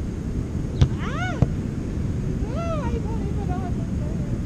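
A young woman calls out briefly from a distance.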